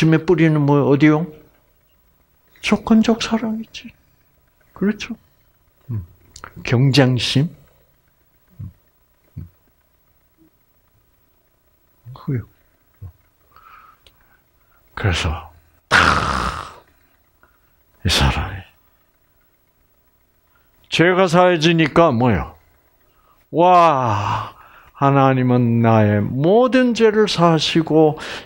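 An elderly man speaks with animation through a headset microphone, pausing often.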